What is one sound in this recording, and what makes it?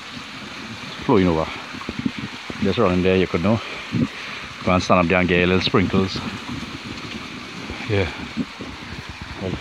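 A small waterfall splashes steadily onto rocks.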